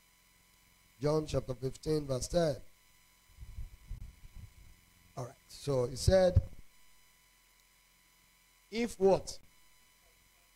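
A man speaks with emphasis through a microphone, in short bursts with pauses.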